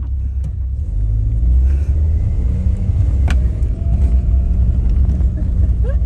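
Tyres roll over gravel as a car drives off.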